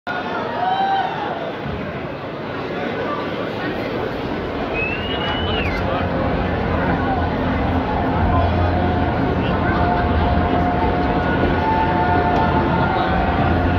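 A singer's voice comes through a microphone over the music.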